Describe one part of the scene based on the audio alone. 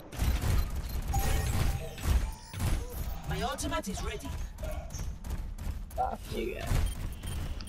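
Video game gunfire and sound effects play.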